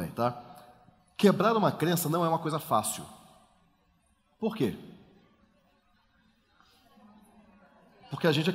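A man speaks with animation through a headset microphone in a large echoing hall.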